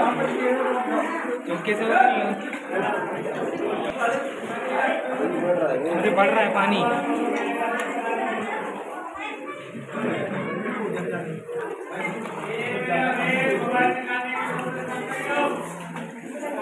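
Water splashes as people wade through it.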